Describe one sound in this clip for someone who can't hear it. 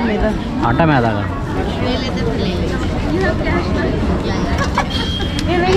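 Young women talk and laugh close by.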